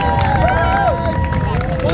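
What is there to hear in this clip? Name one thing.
A young man shouts with excitement close by.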